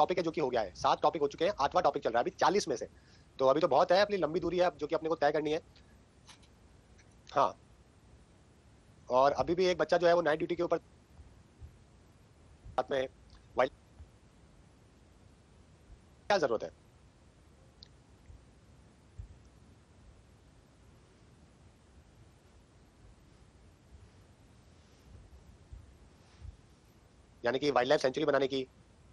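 A man talks through a microphone in short bursts, with pauses between.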